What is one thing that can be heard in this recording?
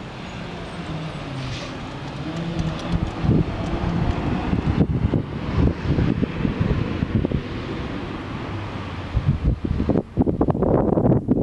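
A pickup truck's engine idles.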